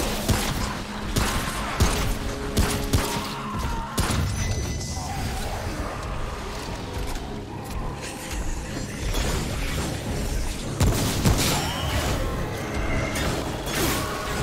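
Monsters snarl and screech.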